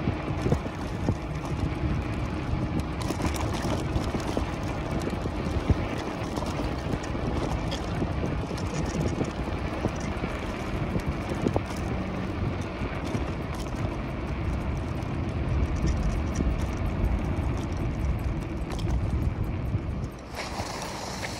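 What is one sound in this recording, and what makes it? Wind rushes and buffets loudly past a bicycle rider outdoors.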